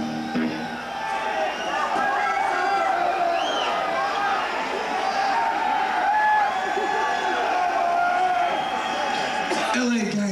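A bass guitar plays loudly through an amplifier in a large echoing hall.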